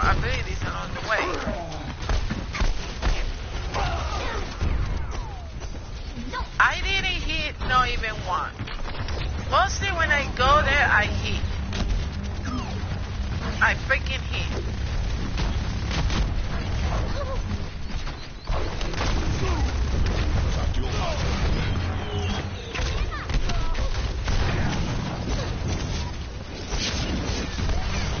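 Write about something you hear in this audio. Gunfire rattles rapidly in quick bursts.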